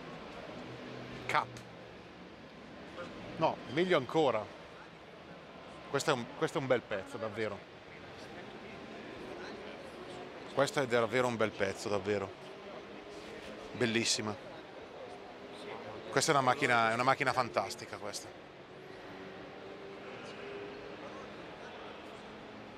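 A crowd murmurs in the background of a large hall.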